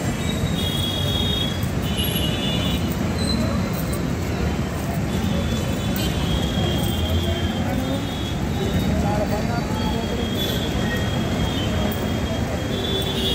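A group of people march in boots on asphalt.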